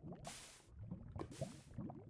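A lit fuse hisses briefly.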